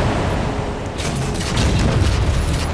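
An explosion bursts nearby.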